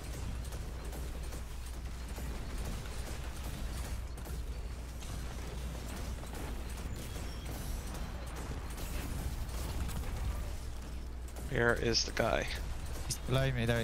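Rapid gunfire crackles and booms.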